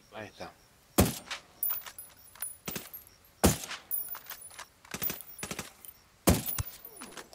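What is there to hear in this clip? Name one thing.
A silenced rifle fires single sharp shots.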